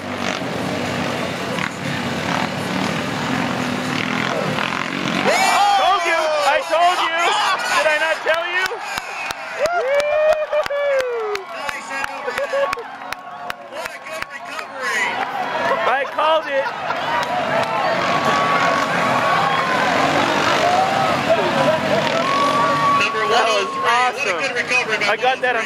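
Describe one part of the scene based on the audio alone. Off-road buggy engines roar and rev up and down nearby.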